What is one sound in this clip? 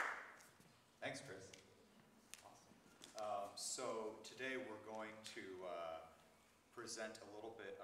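A man speaks calmly into a microphone over a loudspeaker in a large echoing hall.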